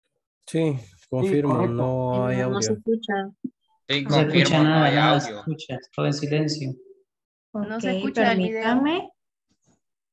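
A man speaks calmly through a loudspeaker, heard over an online call.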